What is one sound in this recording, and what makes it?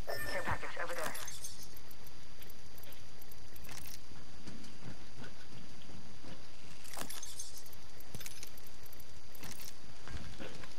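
Short clicks and rattles sound as items are picked up.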